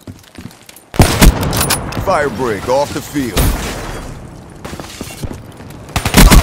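Loud gunshots fire in short bursts.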